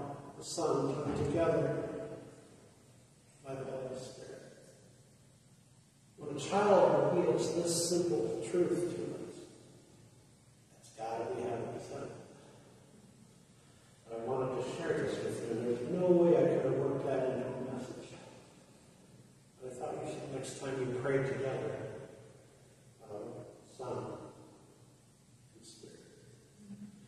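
An elderly man speaks calmly in phrases with pauses, in a large echoing hall.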